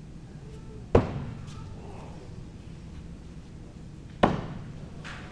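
An axe thuds sharply into a wooden board.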